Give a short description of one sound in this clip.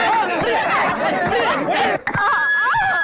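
A crowd shouts and cheers excitedly.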